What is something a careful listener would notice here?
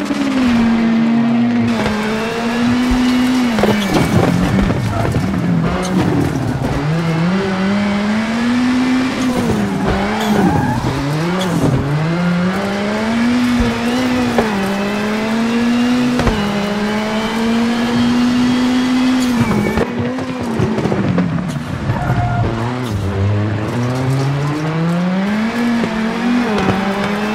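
A rally car engine roars loudly, its pitch rising and falling as it shifts gears.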